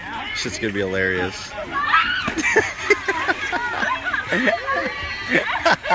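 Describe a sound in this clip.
Water splashes as a person dives into a pool.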